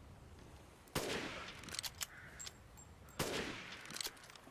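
Rifle shots bang loudly.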